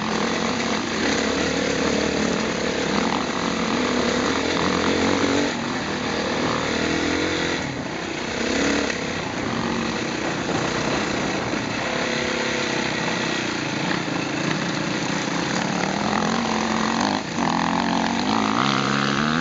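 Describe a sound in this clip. A dirt bike engine revs loudly up close, rising and falling in pitch.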